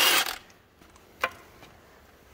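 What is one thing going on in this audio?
Loose bolts clink as they drop onto a metal floor.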